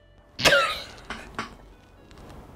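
A young woman screams loudly close to a microphone.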